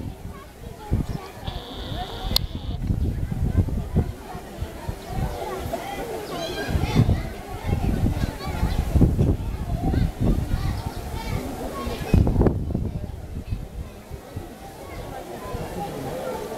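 Water splashes and sloshes as a bear swims.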